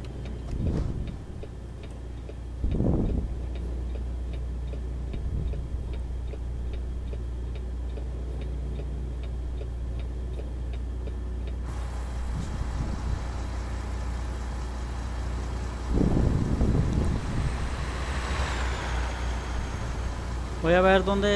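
A truck's diesel engine rumbles steadily.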